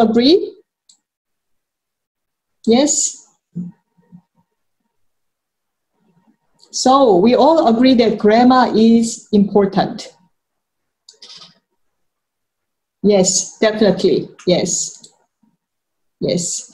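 A woman speaks clearly and slowly through a microphone, as if teaching, with pauses between phrases.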